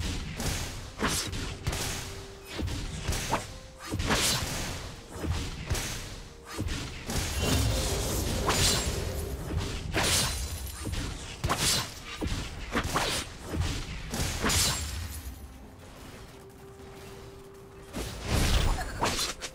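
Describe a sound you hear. Weapons clash and strike repeatedly.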